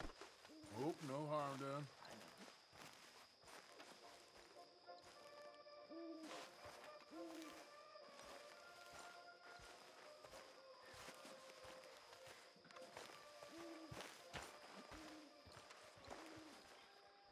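Footsteps tread steadily over grass.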